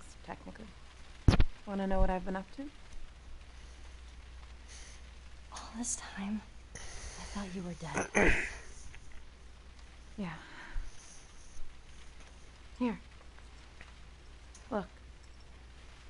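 A young woman speaks calmly and softly up close.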